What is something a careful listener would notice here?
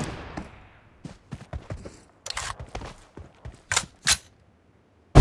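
Footsteps patter on grass and dirt.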